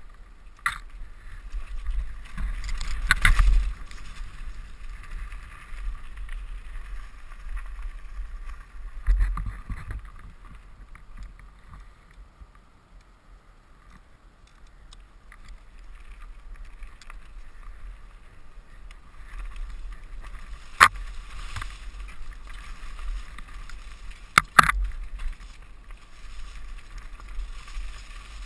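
Wind rushes past a helmet as a bicycle speeds downhill.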